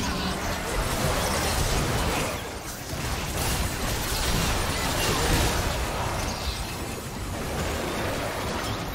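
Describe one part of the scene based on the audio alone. Fantasy battle game spell effects blast and crackle.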